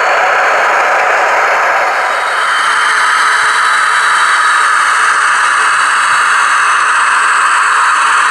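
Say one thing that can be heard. A small model train motor hums and whirs steadily.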